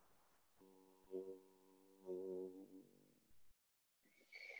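A man chants a long, steady hum, heard through an online call.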